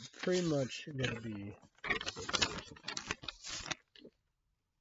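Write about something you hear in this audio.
Paper rustles close by.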